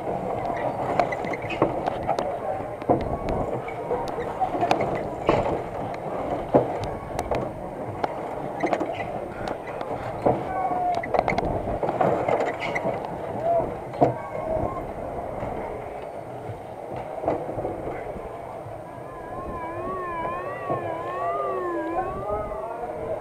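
A spinning fairground ride rattles and clanks as it whirls around.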